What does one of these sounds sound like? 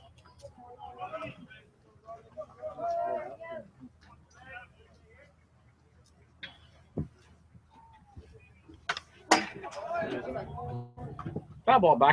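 A metal bat cracks against a baseball in the distance.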